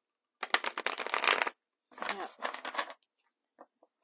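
A deck of playing cards riffles with a quick fluttering patter.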